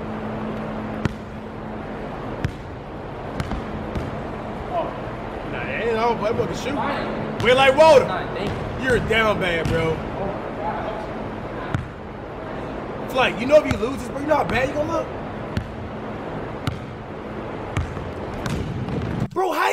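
A basketball bounces on a hard court floor with sharp thuds.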